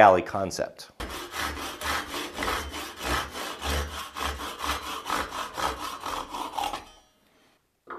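A hacksaw cuts through metal with quick, rhythmic strokes.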